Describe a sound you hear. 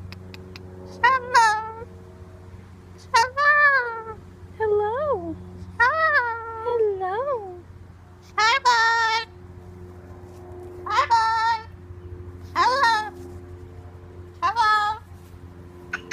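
A cockatoo squawks loudly in short, rising and falling calls.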